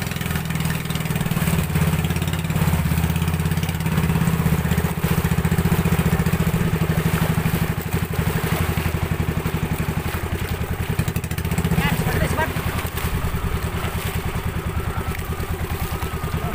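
Water splashes and rushes against the hull.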